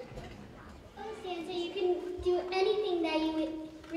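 A young girl speaks into a microphone.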